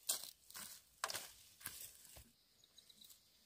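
Bamboo poles knock together as they are set down.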